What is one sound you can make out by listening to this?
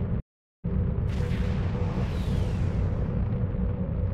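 An energy beam fires with a sharp hiss.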